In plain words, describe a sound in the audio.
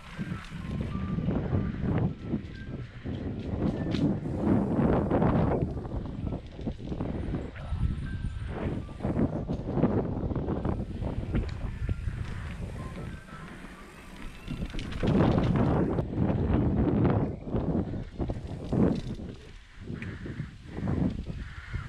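A bicycle frame rattles and clunks over bumps.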